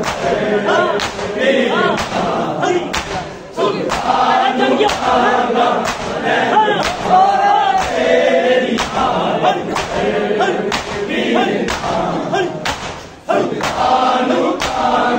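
Men beat their chests with hands in a steady rhythm.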